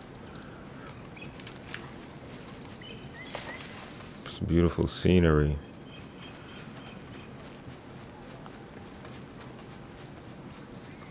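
Footsteps crunch softly on a dirt path.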